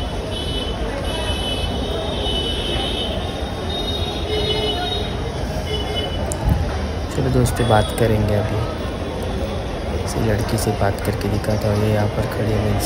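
Footsteps tread along a walkway.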